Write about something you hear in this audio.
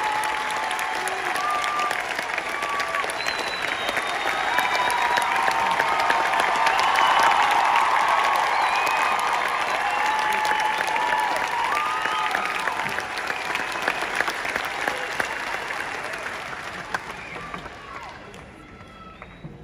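People in a crowd cheer and whistle.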